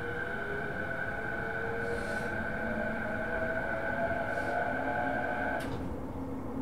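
An electric train motor whines, rising in pitch, then cuts off.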